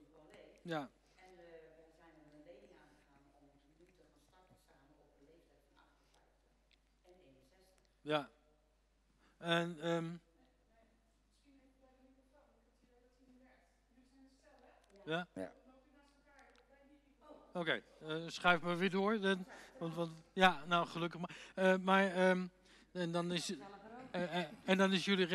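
A middle-aged woman talks with animation into a close microphone.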